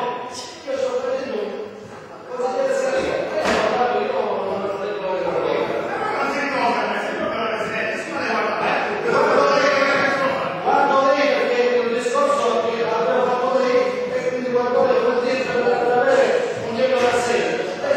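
An elderly man speaks with animation in a large echoing hall.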